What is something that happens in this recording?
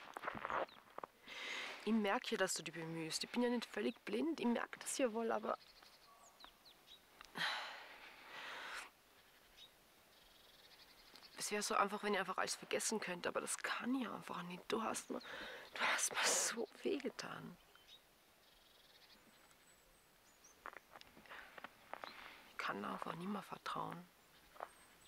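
A young woman speaks quietly and tensely, close by.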